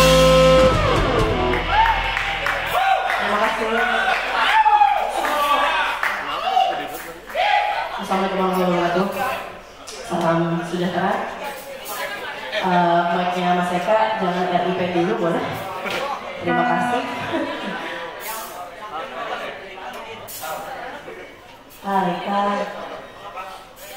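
A drummer plays a drum kit.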